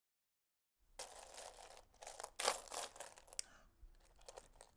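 Loose buttons rattle and clatter as a hand stirs them in a box.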